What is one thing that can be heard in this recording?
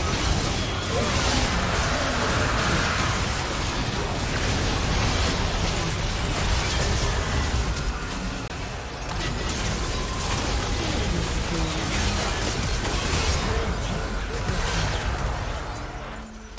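Video game spell effects blast and crackle during a fight.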